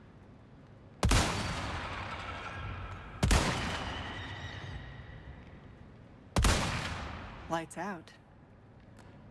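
A rifle fires loud shots that echo and slowly fade.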